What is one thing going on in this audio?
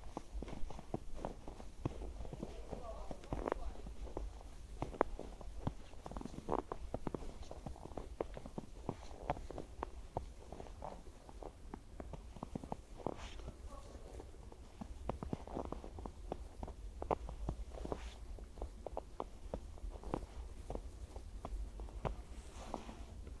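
Footsteps crunch slowly through fresh snow.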